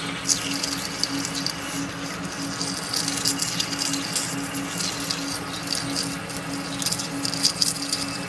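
A cutting tool scrapes and hisses against spinning metal, with chips crackling.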